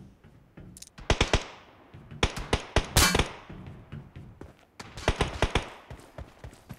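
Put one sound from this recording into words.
Boots land with loud metallic thuds after jumps.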